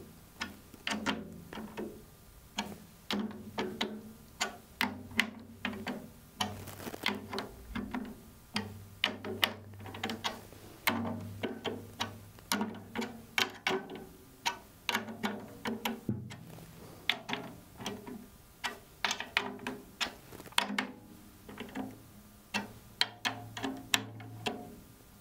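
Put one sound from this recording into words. A man plays a snare drum with sticks in quick, irregular bursts.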